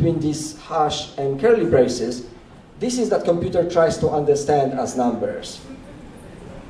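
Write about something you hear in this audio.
A young man speaks calmly through a microphone in a room.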